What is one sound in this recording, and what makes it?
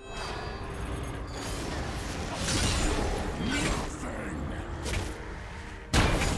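Sharp hits and strikes land repeatedly.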